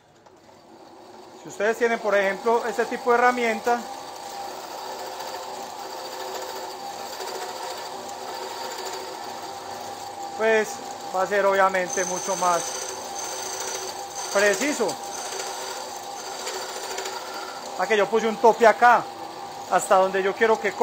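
A band saw motor hums steadily.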